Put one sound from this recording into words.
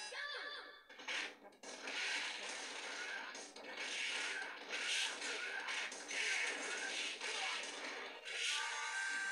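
Punches and kicks thud from a fighting game through a loudspeaker.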